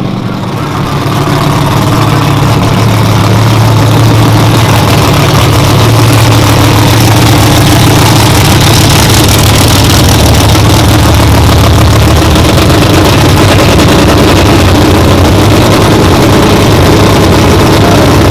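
A loud engine idles with a deep, lumpy rumble close by.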